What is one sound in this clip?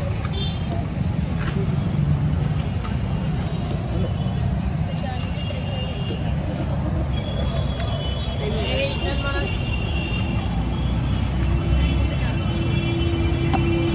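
Metal clinks as a vendor taps pots and plates.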